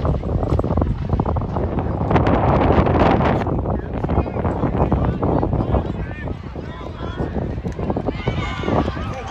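A crowd in the stands cheers and shouts outdoors.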